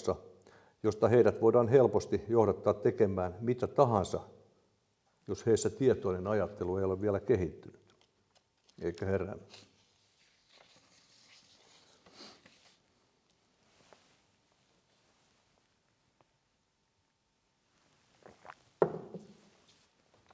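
An elderly man speaks calmly into a microphone in an echoing room.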